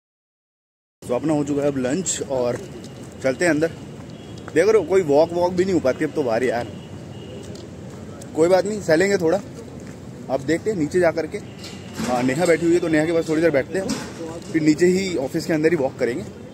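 A man talks close to a phone microphone, speaking with animation.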